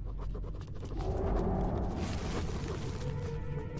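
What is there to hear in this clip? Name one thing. Fire bursts into flame with a roaring whoosh.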